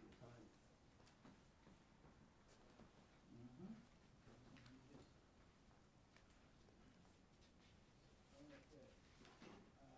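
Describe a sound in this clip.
A man speaks into a microphone in a quiet room.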